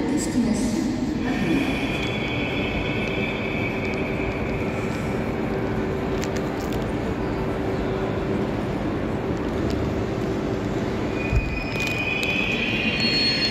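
A train hums while standing at a platform in a large echoing hall.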